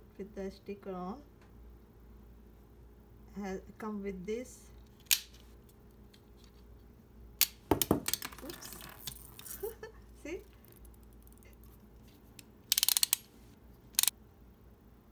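Plastic toy parts click and rattle when handled.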